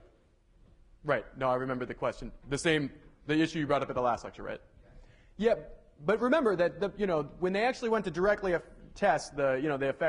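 A man lectures calmly through a microphone.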